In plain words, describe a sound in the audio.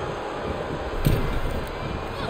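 A body slams hard onto a wrestling ring mat.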